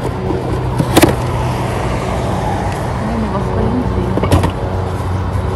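Cardboard boxes bump and scrape as they are moved.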